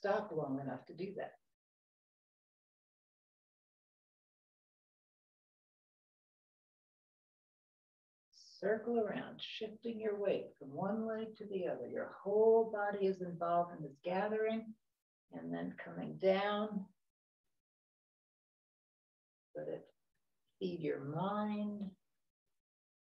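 An elderly woman speaks calmly and clearly into a close microphone.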